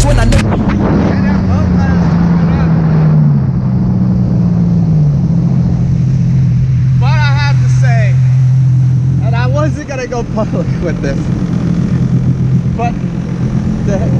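A man talks with animation close to a microphone, over the engine.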